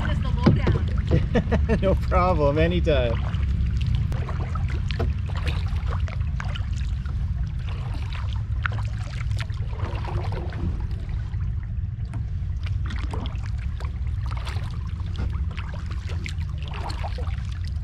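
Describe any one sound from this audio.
Water laps gently against a kayak's hull.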